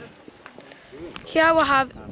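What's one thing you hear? A boy talks close by.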